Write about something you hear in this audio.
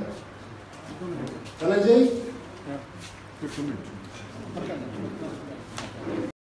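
A young man speaks with animation into a microphone, heard through a loudspeaker.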